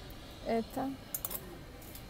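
Plastic clothes hangers clack against each other.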